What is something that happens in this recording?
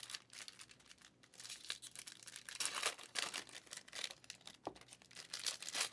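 Trading cards rustle and slide as they are handled close by.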